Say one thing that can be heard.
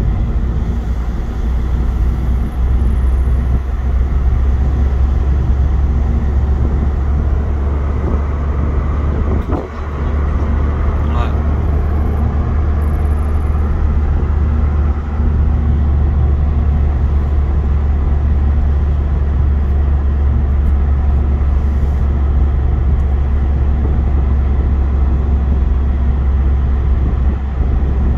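Tyres rumble on a rough country road.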